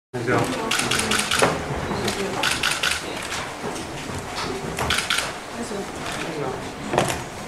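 A crowd of men and women talk at once in a room.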